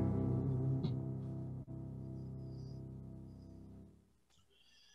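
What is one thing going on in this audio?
A piano chord rings and slowly fades.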